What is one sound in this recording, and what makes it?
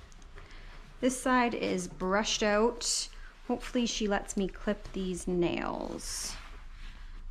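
A woman speaks animatedly nearby.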